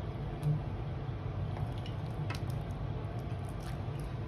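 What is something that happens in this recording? A pot of soup simmers and bubbles.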